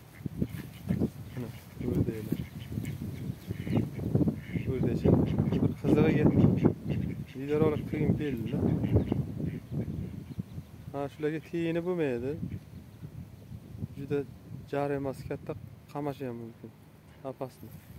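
Ducks quack nearby.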